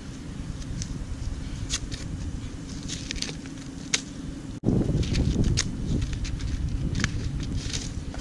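Paper crinkles and tears as an envelope is opened.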